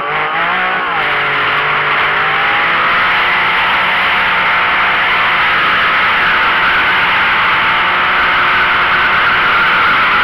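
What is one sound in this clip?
Tyres screech and squeal as they spin on the road.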